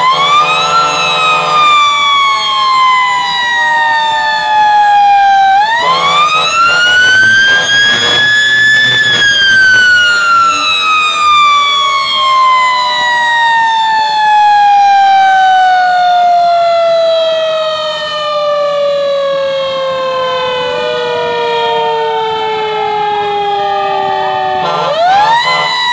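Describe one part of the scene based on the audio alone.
A fire engine's motor rumbles as it drives.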